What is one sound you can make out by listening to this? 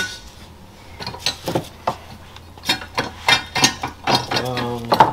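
Metal tools clink against an engine block.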